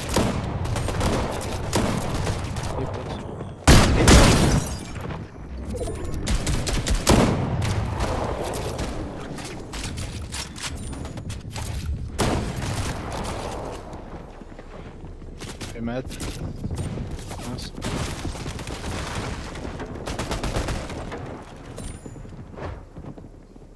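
Rapid clicks and wooden knocks of building clatter on and off.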